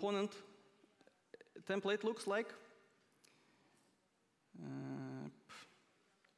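A man speaks calmly into a microphone.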